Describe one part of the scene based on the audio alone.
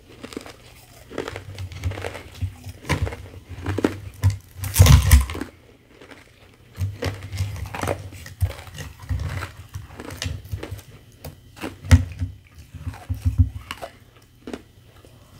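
Shaved ice rustles and crackles as fingers handle it.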